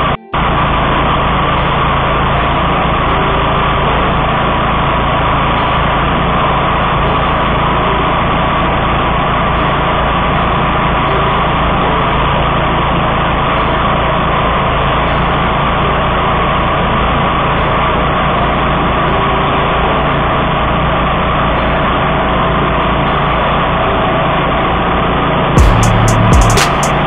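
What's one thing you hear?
A petrol mower engine roars loudly and steadily close by.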